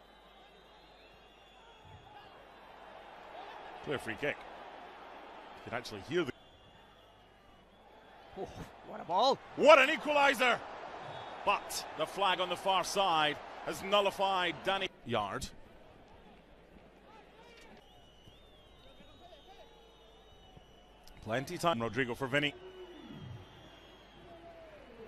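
A large crowd cheers in a stadium.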